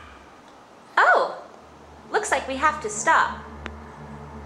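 A woman speaks close by in a squeaky, playful puppet voice.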